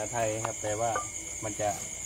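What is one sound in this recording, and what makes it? A wooden pestle pounds in a clay mortar.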